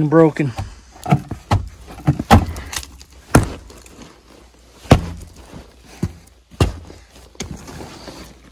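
Boots crunch and scuff on gravel and dirt.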